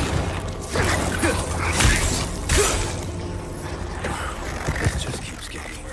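Heavy blows thud during a struggle.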